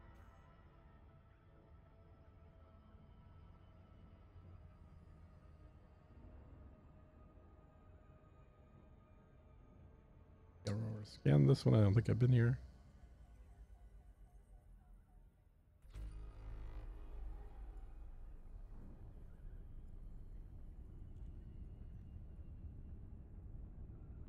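A spaceship's engine hums with a low, steady rumble.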